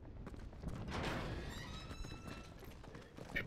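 A metal gate creaks as it is pushed open.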